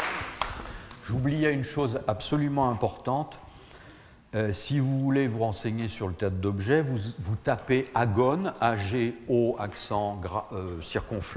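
A middle-aged man speaks with animation in a large room.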